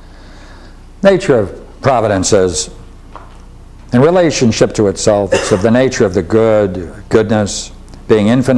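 An elderly man speaks clearly and with emphasis, reading aloud.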